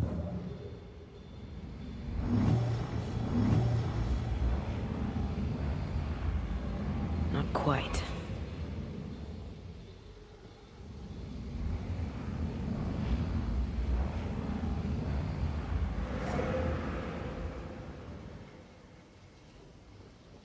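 A deep, eerie whooshing drone swells and fades.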